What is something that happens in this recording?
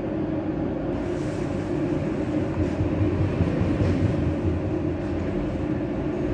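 A second train rushes past close by.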